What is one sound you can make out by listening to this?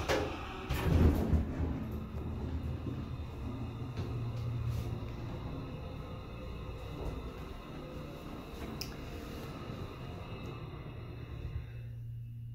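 An elevator car hums and rumbles steadily as it moves.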